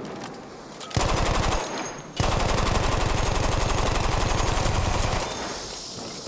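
A heavy machine gun fires rapid bursts, loud and close.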